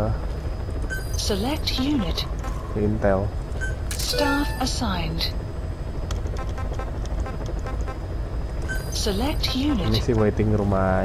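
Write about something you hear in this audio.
Short electronic blips sound as menu options change.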